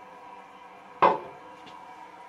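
A toilet lid knocks open against the tank.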